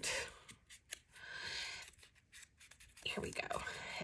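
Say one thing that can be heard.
A small ink applicator scrubs softly against the edge of paper.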